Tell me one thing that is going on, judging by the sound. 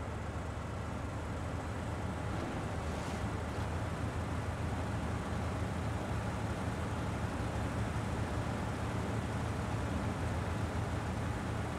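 Branches scrape and snap against a truck.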